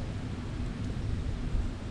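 A hand crumbles dry soil close by.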